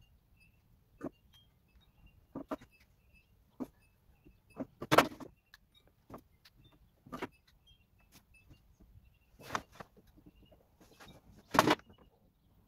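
Spring clamps click and snap onto a wooden frame.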